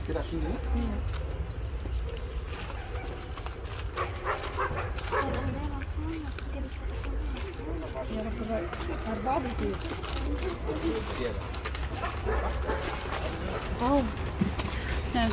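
Men talk calmly nearby.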